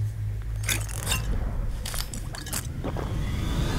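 A small metal mechanism clicks and clanks.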